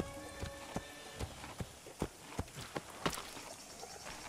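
A horse's hooves clop at a walk.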